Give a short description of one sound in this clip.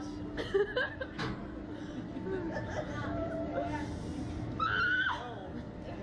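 Young women laugh and shriek close by.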